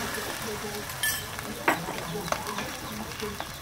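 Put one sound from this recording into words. Chopsticks clink against a metal pot.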